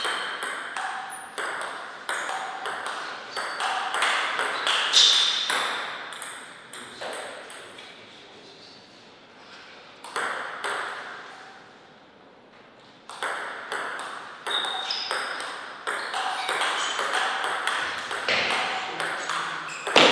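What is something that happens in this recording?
A ping-pong ball clicks back and forth off paddles and a table in quick rallies.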